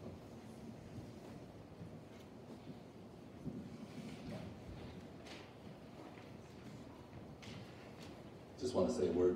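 A crowd of adults murmurs and chatters quietly in a room.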